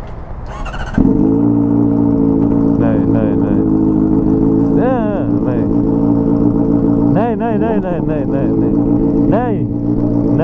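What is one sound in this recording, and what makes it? A motorcycle engine starts and idles steadily close by.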